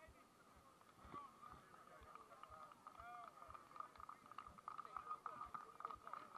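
A crowd of spectators cheers and calls out at a distance.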